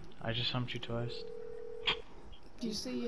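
A phone line rings with a steady tone.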